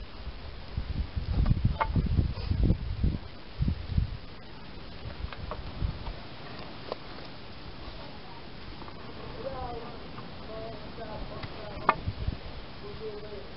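Wooden boards knock and clatter against each other.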